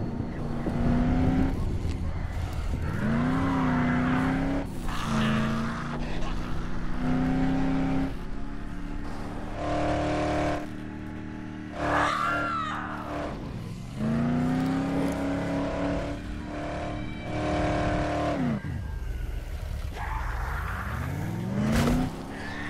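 A car engine revs up and down as it drives fast.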